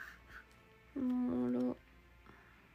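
A young woman hums a short steady note.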